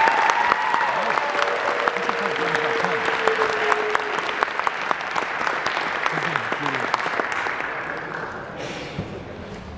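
An audience applauds in a large echoing hall, then the clapping fades away.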